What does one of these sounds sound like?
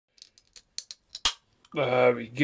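A can of drink cracks open with a hiss.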